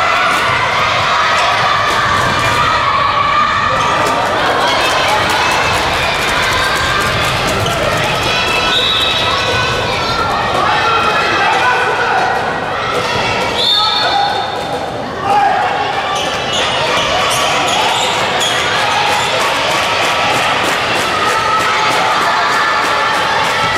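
A crowd of spectators cheers and chatters, echoing in a large hall.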